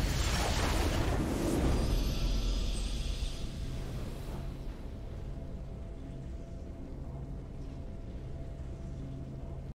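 A game's victory fanfare sounds, then fades.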